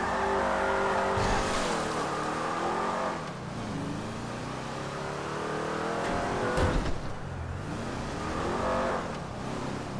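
A car engine revs and roars, rising and falling in pitch.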